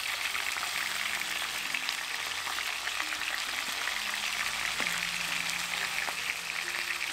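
Food simmers and bubbles softly in a pot.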